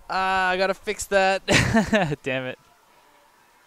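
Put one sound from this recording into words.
A young man laughs close to a headset microphone.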